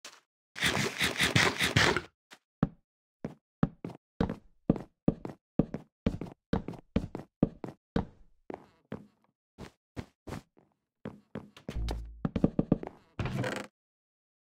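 Wooden blocks are placed one after another with short, quick knocks.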